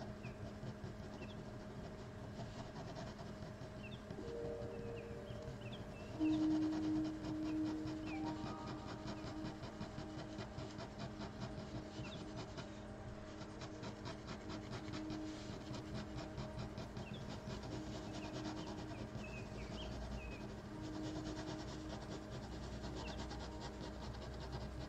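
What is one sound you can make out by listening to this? A ballpoint pen scratches softly on paper.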